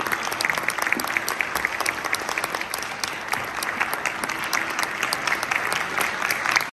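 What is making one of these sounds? A large ensemble of veenas plays a lively melody with quick plucked notes.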